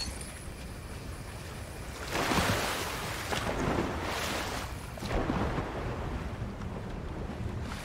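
Water splashes as a swimmer paddles and dives.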